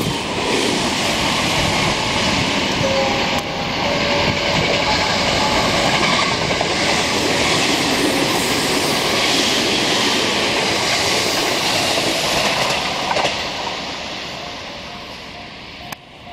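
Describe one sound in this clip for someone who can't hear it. A train rumbles and roars past close by, then fades into the distance.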